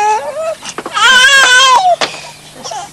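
A baby cries nearby.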